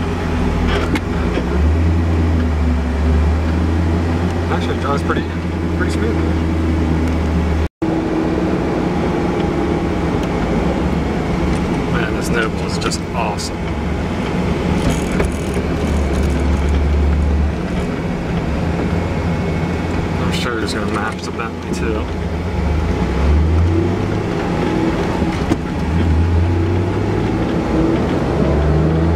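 Wind and tyre noise rush past an open-topped car.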